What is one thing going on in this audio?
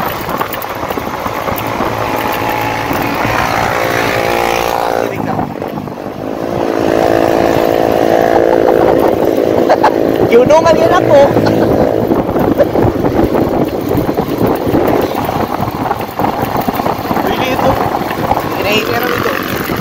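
A motorcycle engine hums and rises and falls in pitch as it rides along.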